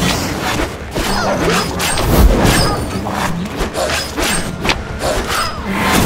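Weapons slash and strike in a fast fight.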